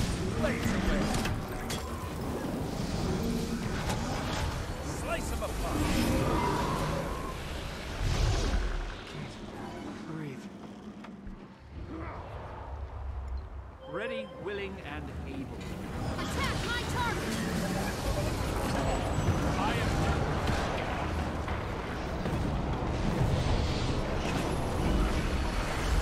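Magical spells crackle and burst in a video game battle.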